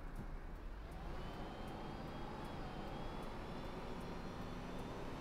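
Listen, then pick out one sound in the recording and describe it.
A bus engine hums steadily with a rising whine as the bus drives along.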